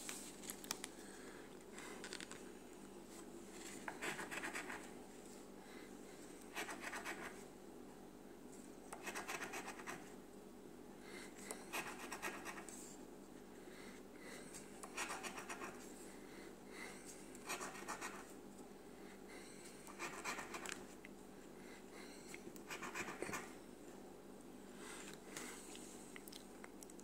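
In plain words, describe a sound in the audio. Someone scratches the coating off a lottery scratch card in short bursts.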